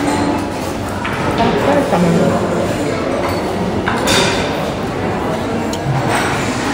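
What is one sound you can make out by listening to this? Cutlery clinks against dishes.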